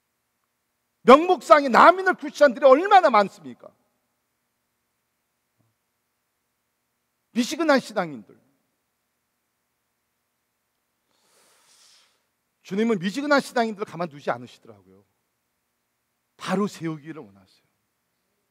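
An older man preaches through a microphone in short phrases with long pauses.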